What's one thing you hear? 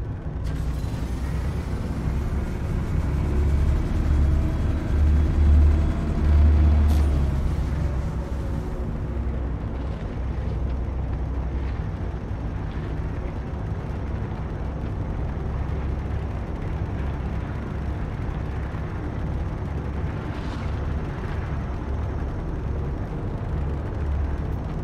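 A spacecraft engine rumbles low and steadily.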